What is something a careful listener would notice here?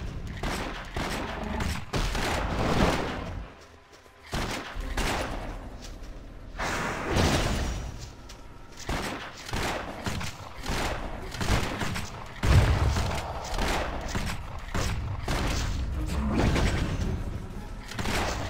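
Heavy blows thud against a lumbering creature.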